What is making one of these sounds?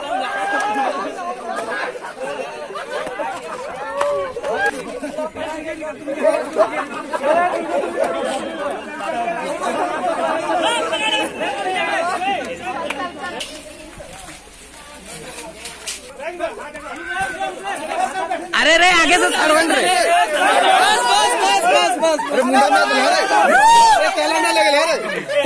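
A crowd of young men shout and talk excitedly outdoors.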